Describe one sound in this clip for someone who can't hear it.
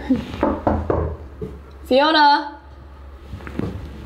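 A young woman knocks on a wooden door.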